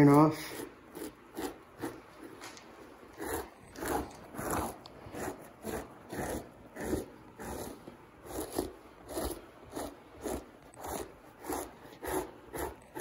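A blade scrapes over a hide in quick, steady strokes.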